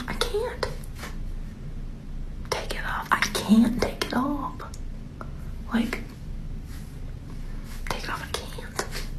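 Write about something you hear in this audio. A young woman speaks playfully close to a microphone.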